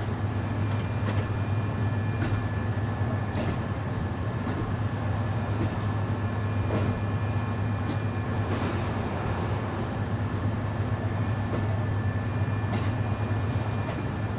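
A train engine hums with a steady low drone.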